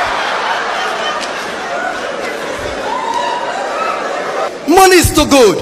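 A crowd laughs and chatters.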